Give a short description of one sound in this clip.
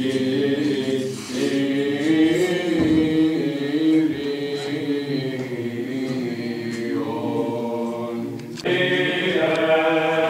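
A group of young men chant together in a slow, sustained melody in an echoing hall.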